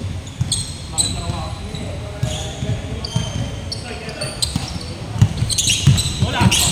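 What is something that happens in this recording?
Men shout to each other across the court.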